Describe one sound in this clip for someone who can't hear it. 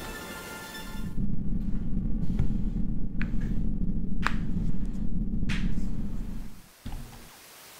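A bright electronic chime swells and rings steadily, then cuts off.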